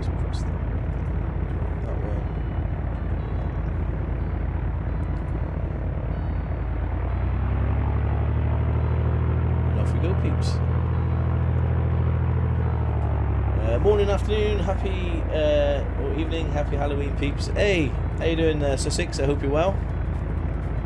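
A light aircraft engine hums steadily, rising in pitch as it runs up.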